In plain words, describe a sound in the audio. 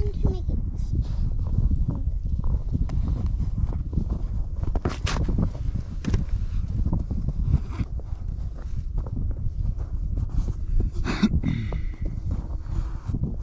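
Wind rumbles steadily outdoors.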